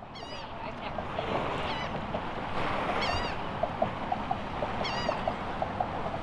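Water laps gently against bridge pilings.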